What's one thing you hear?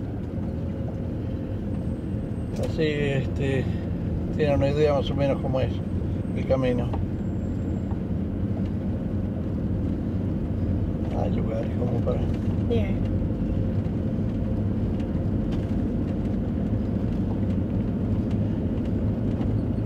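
Tyres rumble over a paved road.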